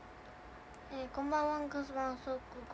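A girl speaks close to a phone microphone.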